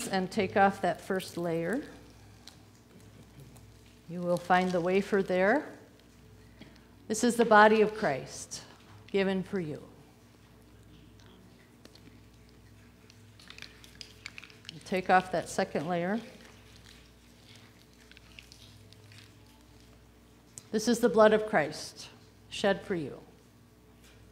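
An older woman speaks slowly and solemnly into a microphone, in a reverberant hall.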